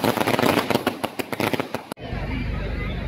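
Fireworks crackle and pop rapidly.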